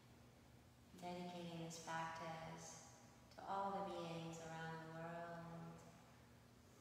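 A woman chants a long, steady tone in an echoing room.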